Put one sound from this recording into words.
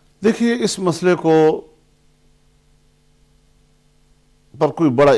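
An elderly man speaks calmly and close to a microphone.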